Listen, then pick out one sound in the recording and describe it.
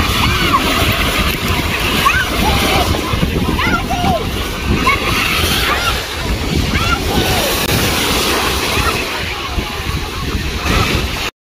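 Distant voices of children and adults call out from the water.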